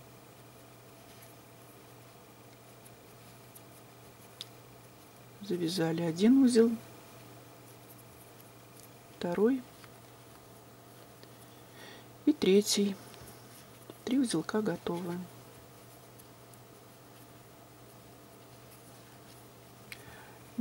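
Cloth rustles softly.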